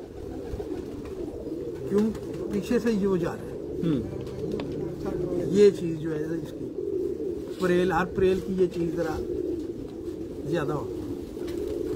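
An elderly man talks with animation close by.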